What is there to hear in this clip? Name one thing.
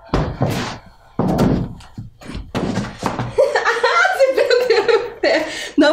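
Sneakers thud and scuff on the floor.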